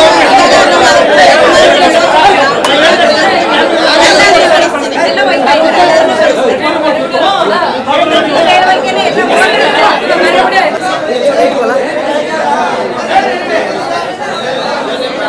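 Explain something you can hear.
A crowd of men and women talk over one another, loudly and with agitation, nearby.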